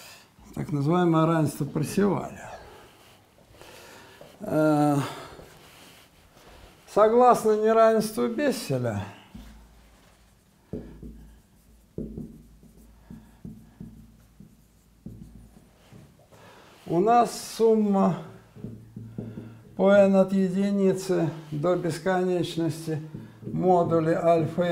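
An elderly man speaks calmly in a room with a slight echo, pausing between phrases.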